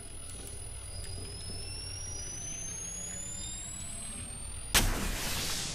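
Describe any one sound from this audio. An electronic device charges up with a whine that rises steadily in pitch.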